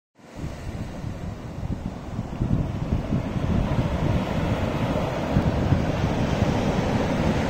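Wind blows outdoors, gusting against the microphone.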